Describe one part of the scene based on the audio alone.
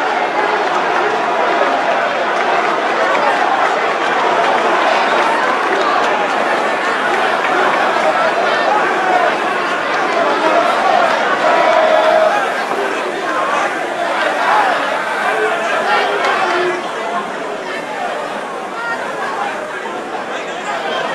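A woman reads out questions steadily through a microphone.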